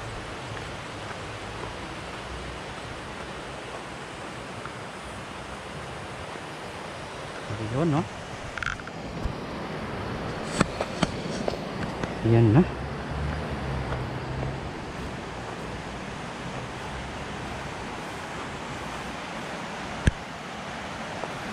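A river flows steadily in the distance.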